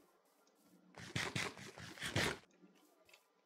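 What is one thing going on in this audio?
Crunchy bites of food being chewed come in quick bursts.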